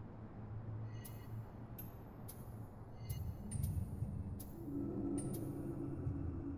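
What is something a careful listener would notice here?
Soft, high menu chimes tick as selections change.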